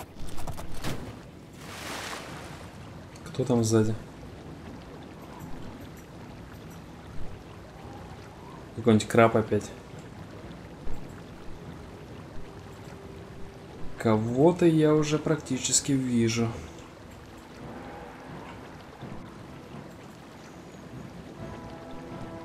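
A horse splashes as it swims through water.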